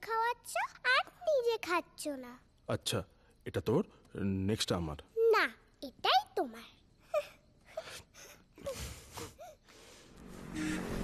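A young girl speaks with animation nearby.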